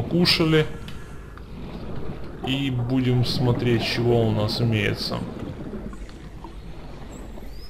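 Air bubbles gurgle and rise underwater.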